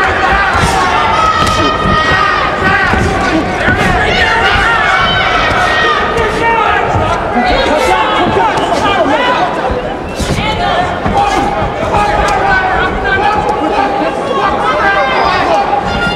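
Punches thud against a boxer's body.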